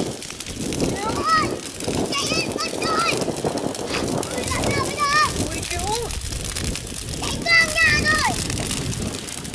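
Children shout excitedly near the fire.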